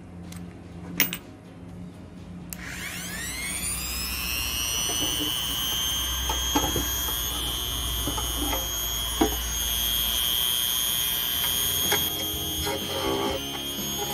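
Plastic parts knock and clatter as they are handled.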